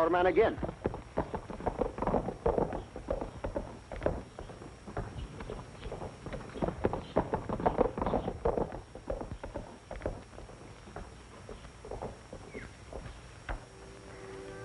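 Horses' hooves gallop on a dirt road.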